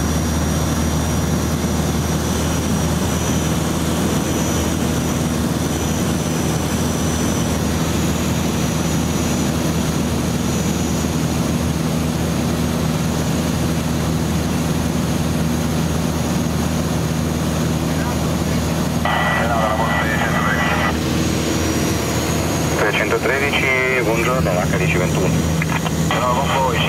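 A light aircraft's propeller engine drones steadily and loudly.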